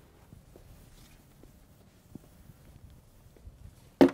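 A felt eraser rubs across a chalkboard.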